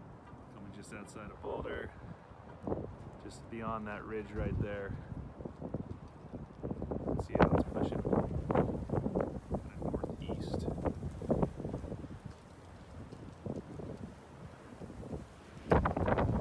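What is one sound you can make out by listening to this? Wind buffets and rumbles outdoors in gusts.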